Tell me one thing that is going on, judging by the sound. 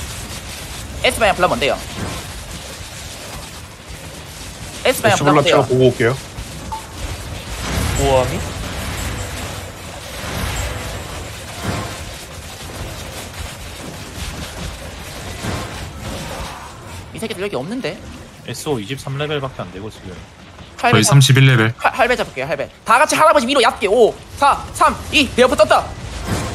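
Magic blasts crackle and boom in a large battle.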